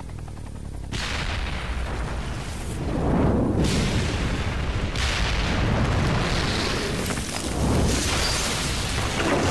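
Huge explosions boom and roar.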